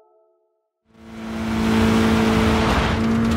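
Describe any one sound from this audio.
A rally car engine idles with a steady hum.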